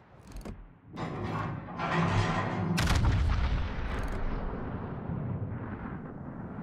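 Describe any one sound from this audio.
Heavy naval guns fire with deep, rumbling booms.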